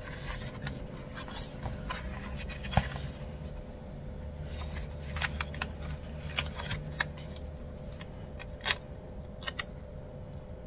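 A sheet of paper rustles and crinkles.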